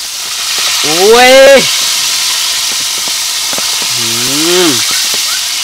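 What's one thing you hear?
Oil sizzles and bubbles steadily in a frying pan.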